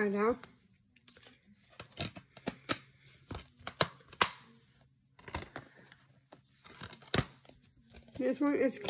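Plastic and paper rustle and click as they are handled.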